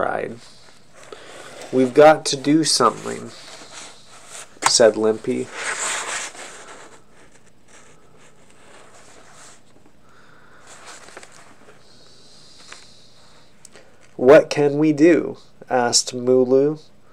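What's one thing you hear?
A man speaks and reads aloud close to the microphone, in short bursts with pauses.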